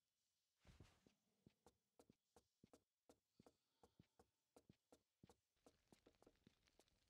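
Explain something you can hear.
Quick footsteps thud on wooden boards.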